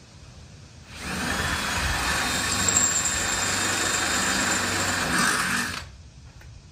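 A power tool whirs steadily.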